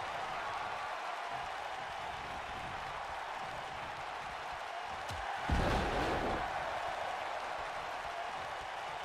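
A large crowd cheers steadily throughout.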